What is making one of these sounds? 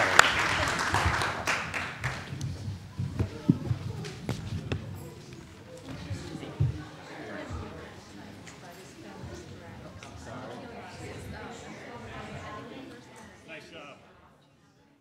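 Chairs and feet shuffle and knock as people stand and move about.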